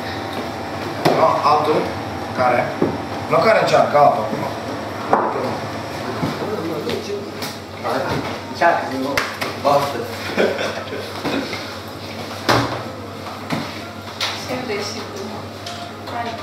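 Several young men talk casually nearby.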